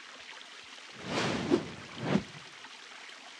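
A soft whoosh sweeps past twice in quick succession.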